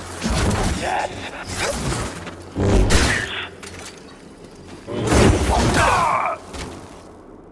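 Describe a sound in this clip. Energy blades clash with sharp crackling bursts.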